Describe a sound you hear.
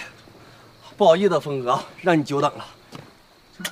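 A man calls out apologetically.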